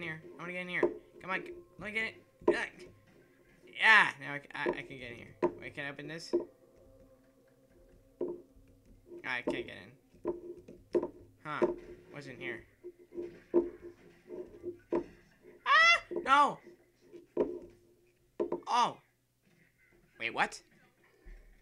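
Footsteps thud on creaking wooden floorboards.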